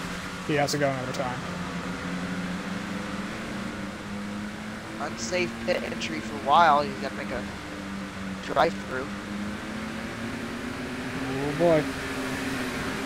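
Race car engines drone steadily in the distance.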